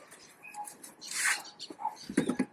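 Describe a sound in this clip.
A cloth rubs against engine parts.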